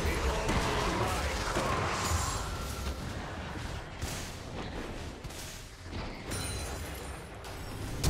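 Game sword hits thud against a monster.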